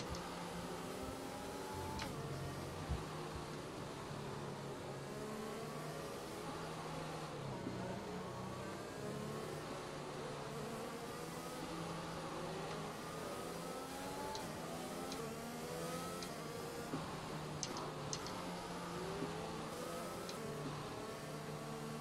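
A racing car engine screams, rising and falling in pitch as it shifts gears.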